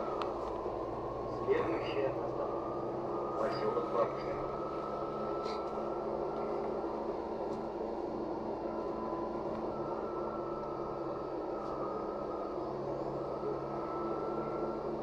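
The engine of a city bus drones as the bus drives along, heard from inside.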